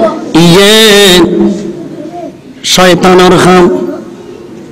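A man chants loudly and forcefully into a microphone, with reverb from loudspeakers.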